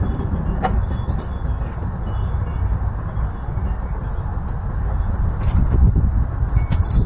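Wind gusts outdoors, rumbling steadily.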